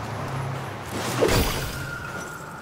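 A staff strikes a body with a sharp thud.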